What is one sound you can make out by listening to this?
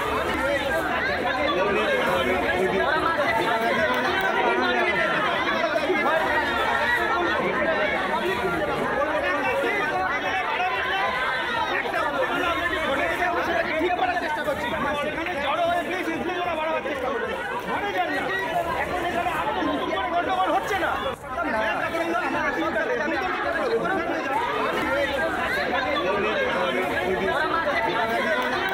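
A crowd of men argue and shout loudly outdoors.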